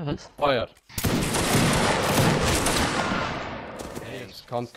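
A volley of musket shots bursts out at once.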